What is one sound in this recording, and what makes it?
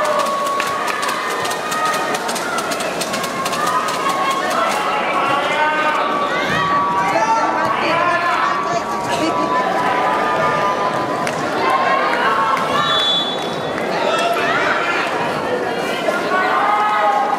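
Young women players shout and call out on the court.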